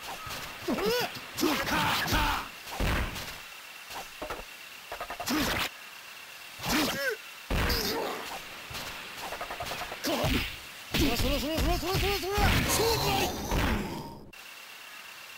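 Swords clash and slash with sharp metallic strikes.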